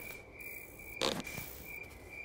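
A slingshot snaps as it fires.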